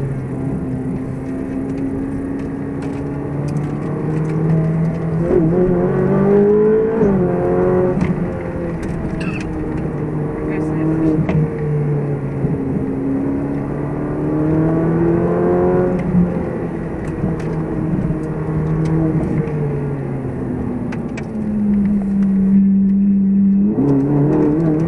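Tyres roll on a paved road.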